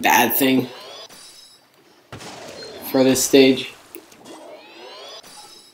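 Wet ink splatters in loud bursts from a game weapon.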